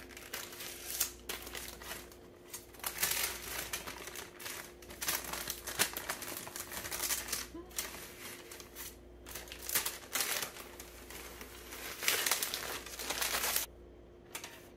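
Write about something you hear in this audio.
Parchment paper rustles and crinkles as it is peeled away.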